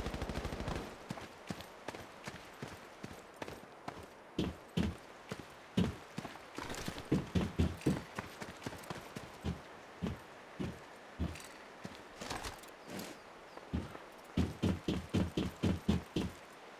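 Footsteps thud steadily on hard ground and metal stairs.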